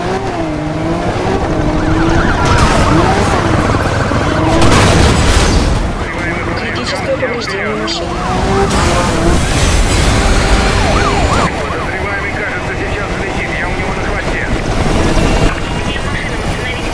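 A sports car engine roars and revs at high speed.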